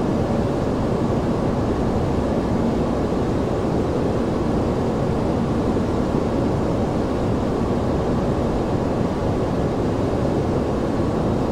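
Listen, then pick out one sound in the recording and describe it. A jet engine hums with a steady, low roar.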